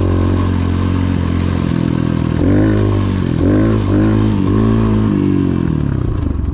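A dirt bike engine roars close by, revving up and down.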